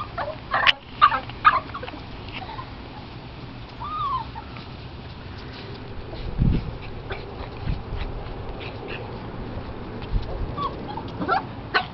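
Small dogs yip and bark playfully close by.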